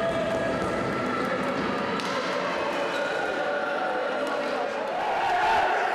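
Young men shout and cheer together in a large echoing hall.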